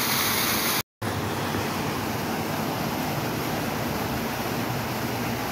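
A fountain splashes water nearby.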